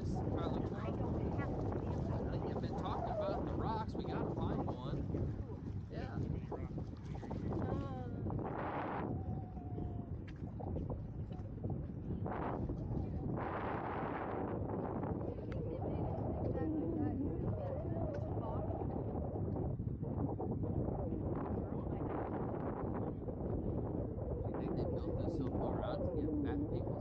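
Wind blows hard across an open space outdoors.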